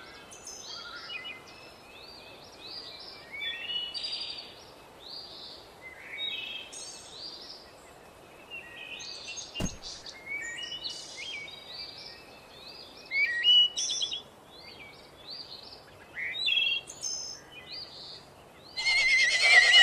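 Cartoon dogs bark and yelp in short bursts.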